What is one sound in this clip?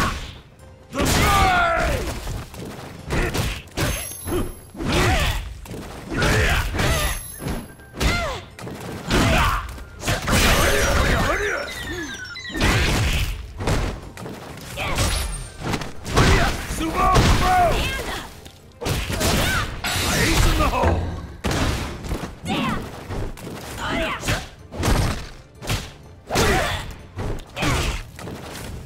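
Punches and kicks land with heavy thuds again and again.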